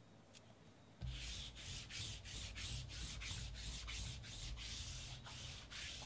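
A sticky lint roller rolls across a surface with a crackling rasp.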